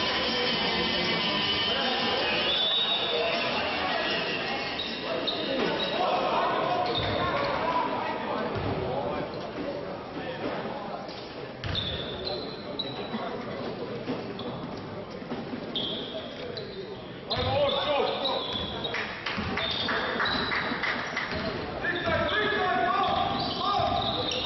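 A crowd murmurs and cheers in an echoing indoor hall.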